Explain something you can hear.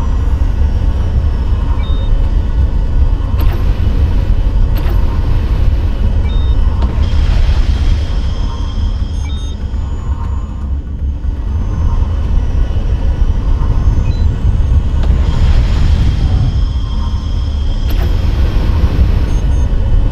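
A spacecraft engine hums with a deep, steady rumble.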